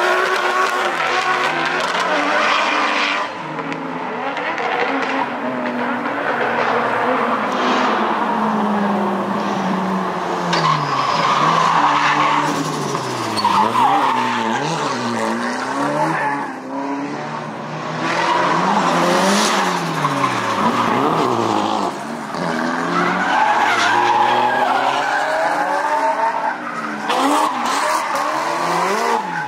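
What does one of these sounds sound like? Tyres squeal and screech on the road.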